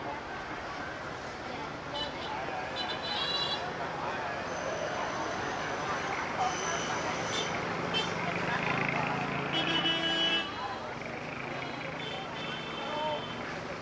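A crowd of people chatter nearby.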